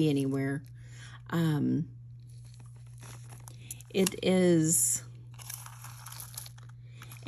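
Metal jewelry clinks softly as it is handled.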